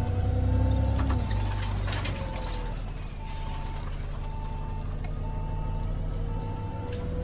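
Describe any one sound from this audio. A turn signal beeps in an even rhythm.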